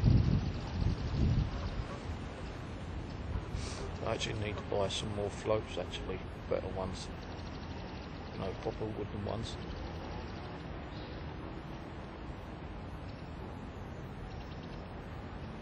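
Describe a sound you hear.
Wind blows outdoors, buffeting now and then.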